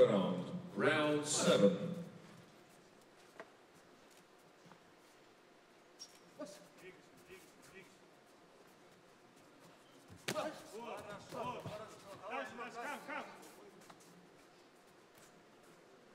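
Boxing gloves thud against a body in quick punches.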